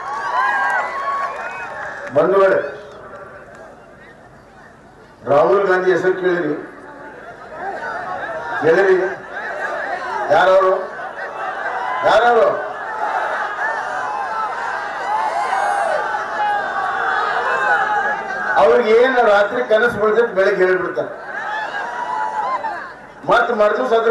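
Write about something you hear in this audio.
A middle-aged man speaks forcefully into a microphone, amplified over loudspeakers outdoors.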